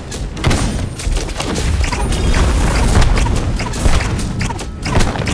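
Heavy weapon strikes clash and thud repeatedly.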